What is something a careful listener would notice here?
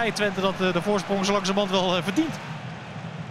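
A large stadium crowd sings a chant loudly.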